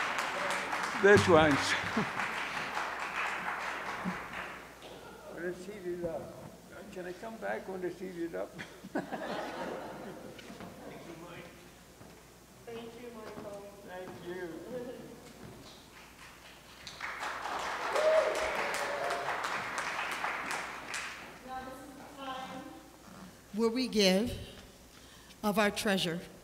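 A woman speaks through a microphone in a large echoing hall.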